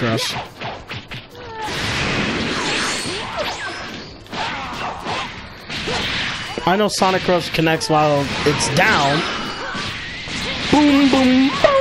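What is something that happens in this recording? Punches and kicks land with sharp thuds in a fight.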